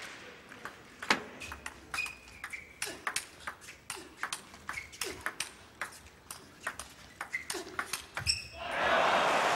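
A ping-pong ball clicks rapidly back and forth across a table.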